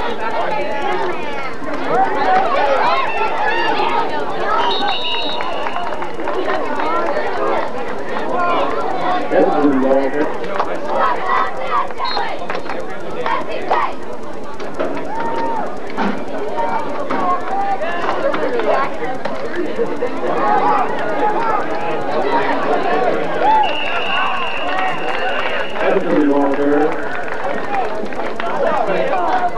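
Young men shout and call out nearby.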